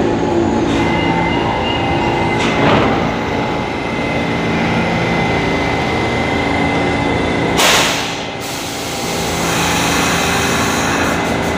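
A subway train rumbles and hums steadily through an echoing station.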